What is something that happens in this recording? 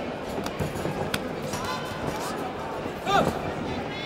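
Boxing gloves thud against a fighter.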